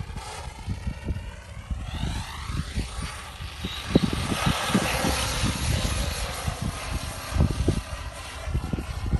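A small electric motor whines high and shifts in pitch as a toy car races over sand.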